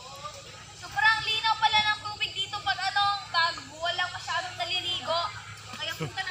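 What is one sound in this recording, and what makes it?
A girl talks with animation nearby.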